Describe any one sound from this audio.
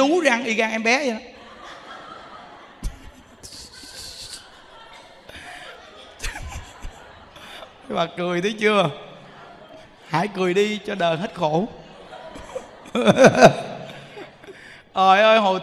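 A crowd of people laughs together.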